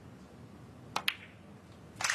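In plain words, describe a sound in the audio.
A cue ball clicks sharply against another ball.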